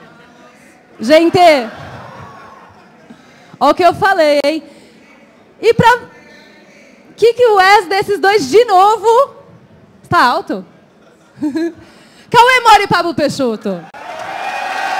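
A young woman speaks with animation through a microphone, her voice echoing through a large hall.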